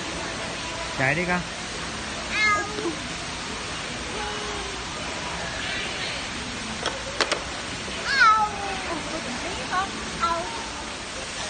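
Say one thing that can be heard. A toddler squeals and babbles excitedly close by.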